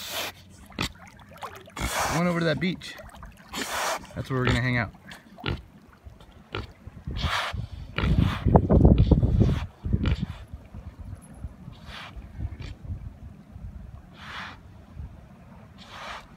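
A pig splashes as it paddles through water.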